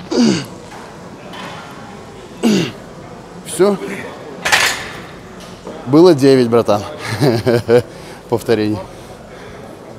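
A man grunts and shouts with effort nearby.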